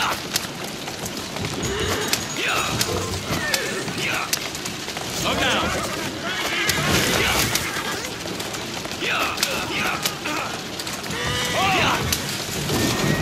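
Horse hooves clatter steadily on cobblestones.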